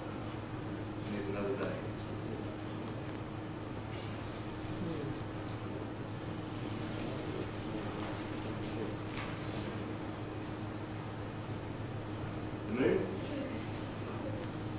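A man speaks briefly and quietly.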